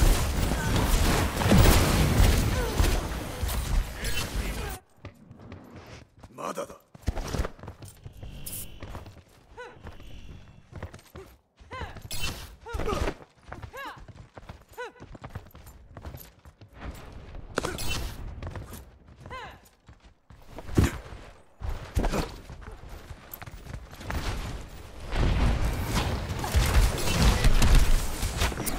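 Game gunfire and blasts crackle loudly.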